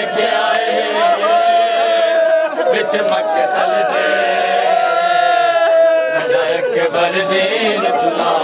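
A man chants a mournful lament loudly through a loudspeaker.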